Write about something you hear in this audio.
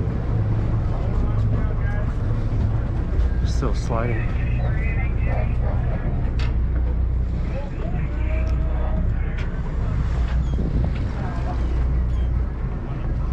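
Water sloshes against a boat's hull.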